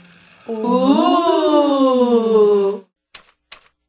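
A young woman sings a long, wavering note.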